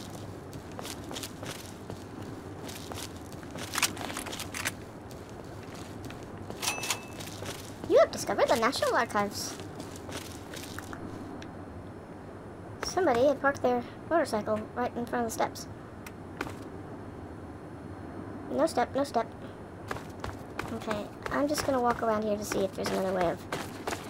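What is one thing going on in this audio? Footsteps crunch over rubble and broken stone.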